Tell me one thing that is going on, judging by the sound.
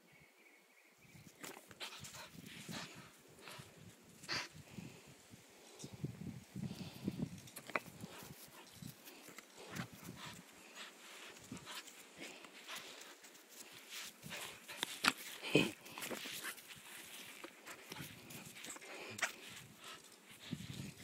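A dog's paws scuffle and thump on grass.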